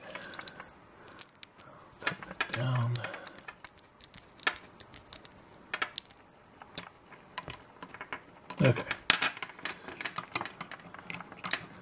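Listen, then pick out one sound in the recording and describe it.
A small screwdriver scrapes and clicks against a terminal screw.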